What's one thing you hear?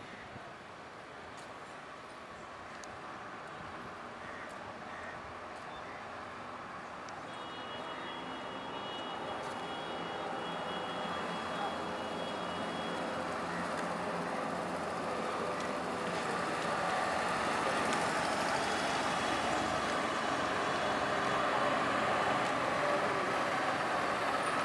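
A bus engine rumbles as it drives closer and grows louder.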